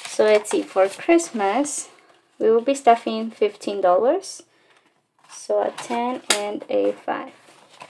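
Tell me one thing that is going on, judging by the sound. Paper banknotes rustle and flick as they are counted by hand.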